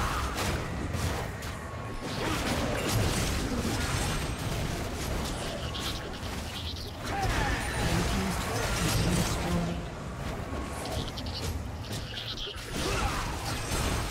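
Magic blasts whoosh and crackle in a fast, busy fight.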